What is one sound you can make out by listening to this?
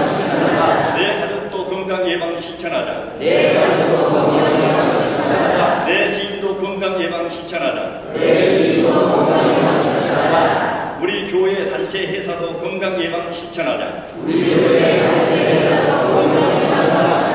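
A middle-aged man speaks steadily into a microphone, heard through a loudspeaker in an echoing room.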